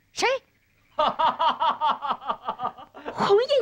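A young boy laughs in quick bursts.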